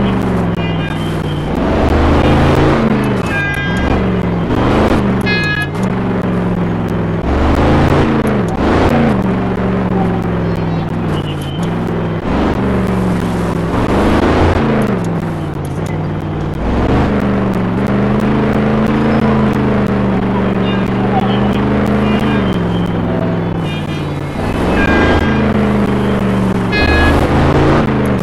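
A monster truck engine roars and revs up and down.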